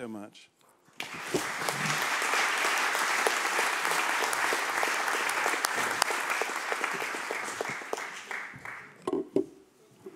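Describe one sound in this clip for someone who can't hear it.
An audience applauds loudly and then fades.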